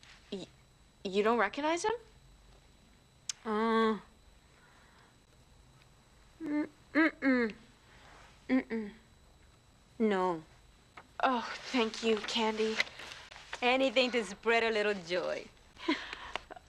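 A young woman reads aloud with exaggerated drama, close by.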